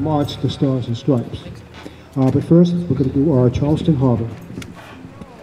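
A man speaks with animation through a loudspeaker outdoors.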